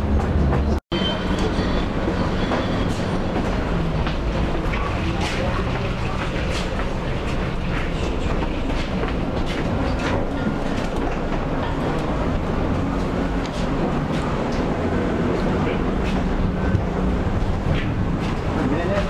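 Loose fittings inside a tram rattle and click.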